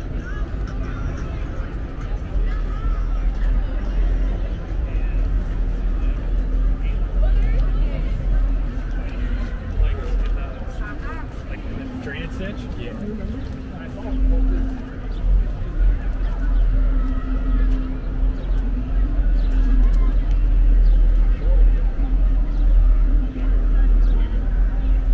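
People chatter in the distance.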